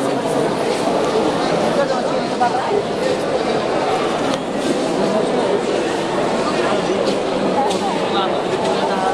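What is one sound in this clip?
A large crowd chatters loudly in an echoing hall.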